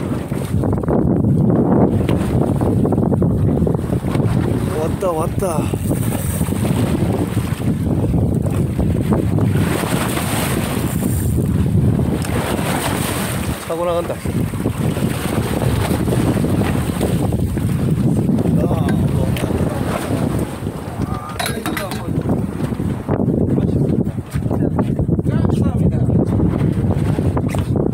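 Sea water splashes and churns against a boat's hull.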